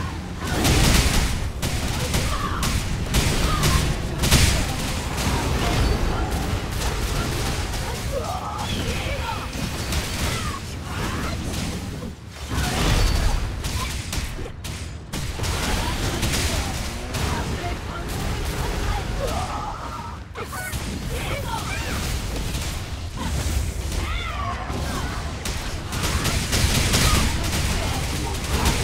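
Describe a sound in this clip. Swords slash and strike in rapid, noisy fighting.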